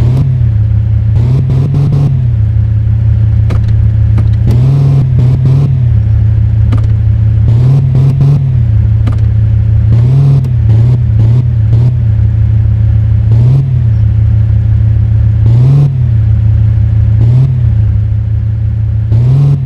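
A car engine hums steadily and rises briefly in pitch from time to time.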